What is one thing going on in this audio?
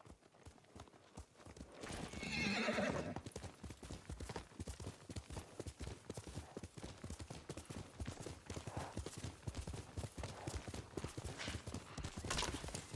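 A horse's hooves gallop rapidly over the ground.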